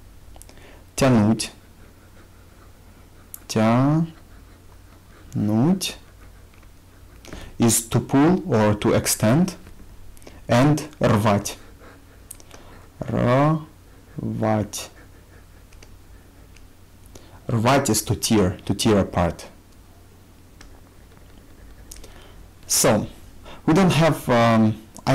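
A young man speaks slowly and clearly into a close microphone, with pauses between words.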